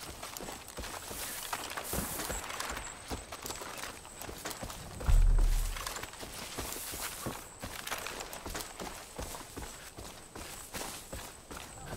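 Footsteps rustle through grass and bushes.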